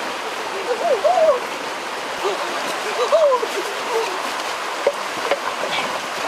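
A river rushes over rocks nearby.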